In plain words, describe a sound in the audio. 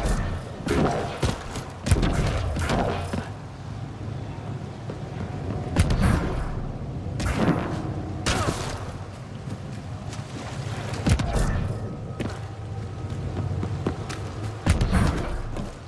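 Heavy footsteps thud on hard ground.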